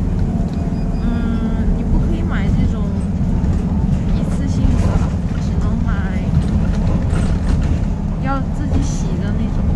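A young woman talks softly and close by.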